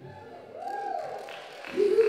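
A young woman claps her hands.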